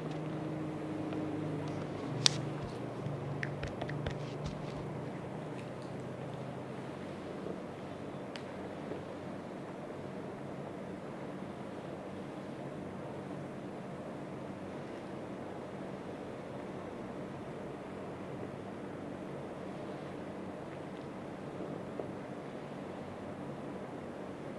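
Hands rub and knead bare skin softly.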